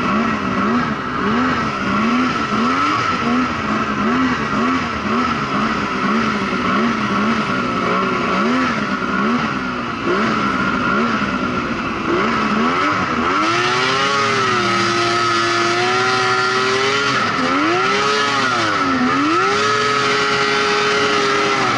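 A snowmobile engine roars close by, revving up and down.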